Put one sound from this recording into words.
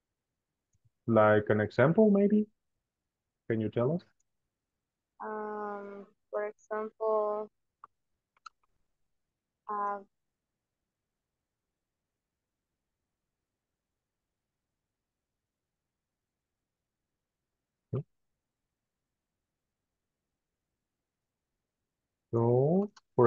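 A woman speaks calmly through an online call, in short bursts with pauses.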